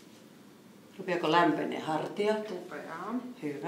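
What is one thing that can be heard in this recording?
A woman speaks clearly through a microphone, giving instructions.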